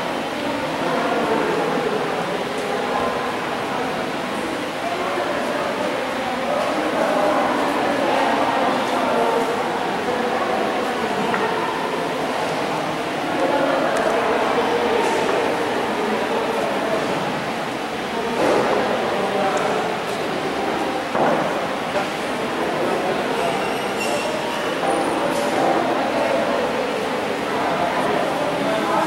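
Several adults chat in low voices nearby, in a large echoing hall.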